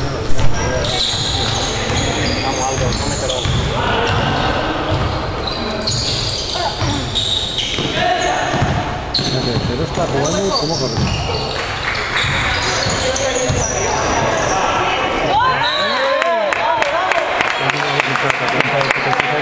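Sneakers squeak sharply on a hard court floor.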